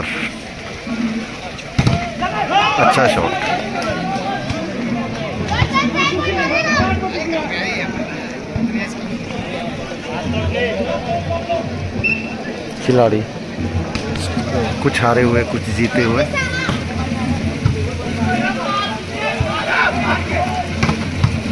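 A crowd of men chatters and shouts outdoors.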